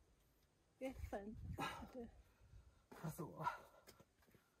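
A climber grunts with effort close by.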